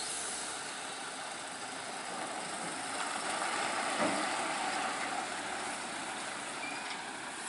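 A heavy truck engine rumbles as the truck slowly pulls a load around a bend.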